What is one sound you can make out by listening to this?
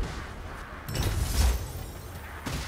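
A heavy weapon strikes with a deep thud.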